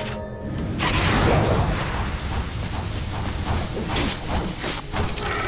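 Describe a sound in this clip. Magic blasts and weapon blows clash in a fight.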